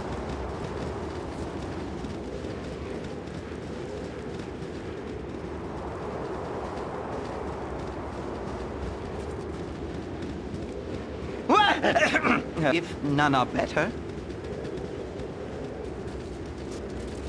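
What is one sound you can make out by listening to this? A soft, steady outdoor ambience of rustling wind hums throughout.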